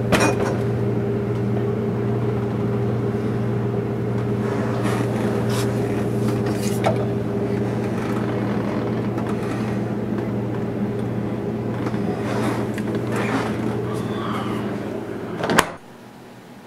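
A refrigerator hums steadily.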